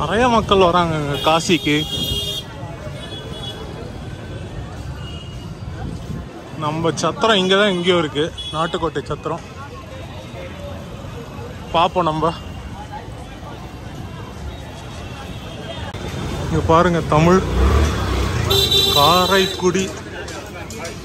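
A man talks loudly close by.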